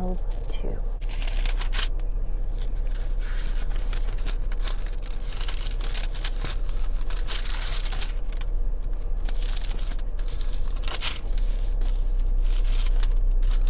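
Paper rustles and crackles.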